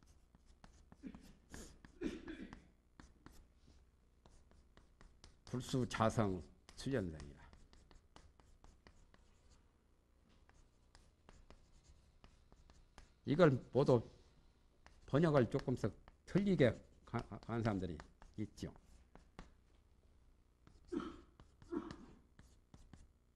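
A man speaks calmly into a nearby microphone in short phrases.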